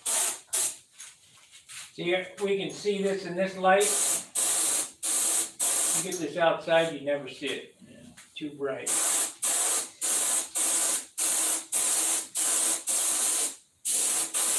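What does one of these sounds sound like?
A compressed-air paint spray gun hisses in short bursts.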